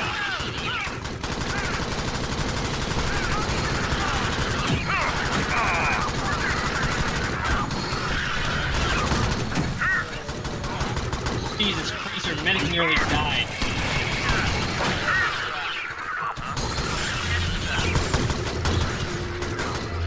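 Automatic rifles fire in bursts in a video game.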